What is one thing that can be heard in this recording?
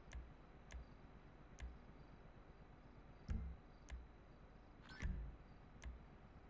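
Short electronic menu clicks tick every second or so.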